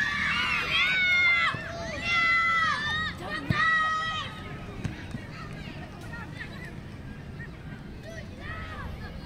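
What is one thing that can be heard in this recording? Children shout loudly outdoors.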